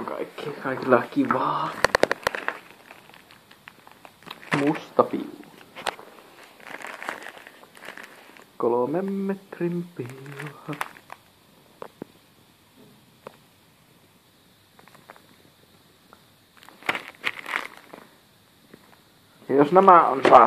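A plastic packet crinkles as it is handled.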